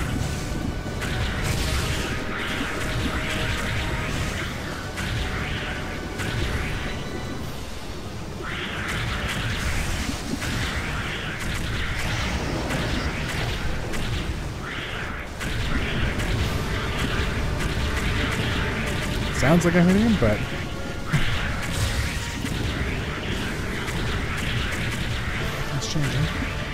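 Energy blasts fire and explode rapidly in a video game.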